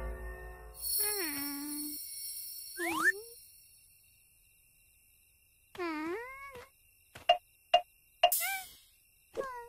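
A young girl whimpers and gasps fearfully.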